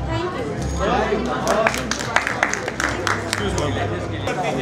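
Several people clap their hands.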